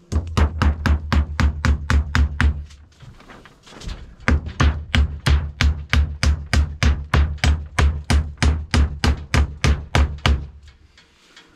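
A hammer rapidly and loudly knocks on wood overhead.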